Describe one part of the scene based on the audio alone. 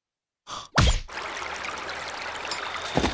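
A fountain splashes softly outdoors.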